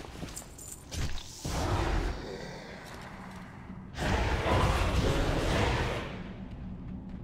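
Electric bolts crackle and zap.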